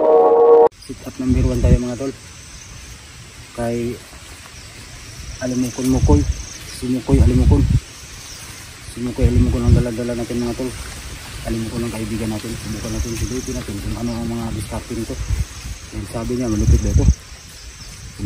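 A middle-aged man talks calmly close by.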